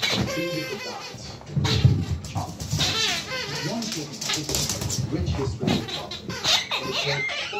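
A squeaky toy squeaks repeatedly as a dog chews it.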